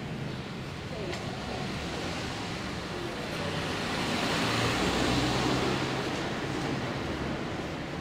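A van engine hums as the van drives slowly past close by.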